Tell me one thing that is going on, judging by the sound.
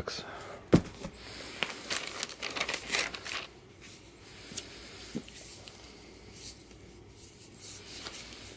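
A hardcover book is picked up and handled with soft taps and rustling.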